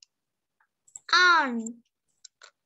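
A young girl answers briefly over an online call.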